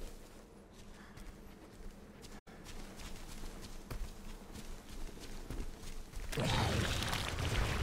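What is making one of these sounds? Footsteps swish through tall grass.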